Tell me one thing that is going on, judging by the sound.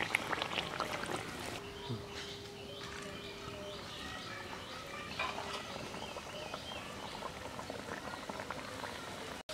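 Hot oil sizzles and crackles steadily.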